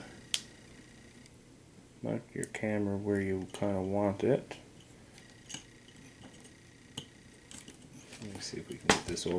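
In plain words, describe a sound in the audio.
Small plastic parts click and tap.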